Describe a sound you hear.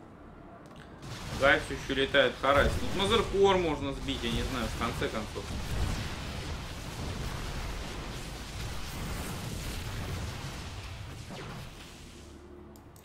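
Game battle sounds crackle and boom.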